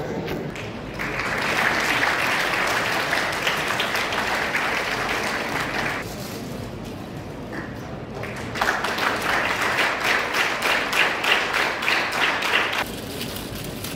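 People clap their hands in applause.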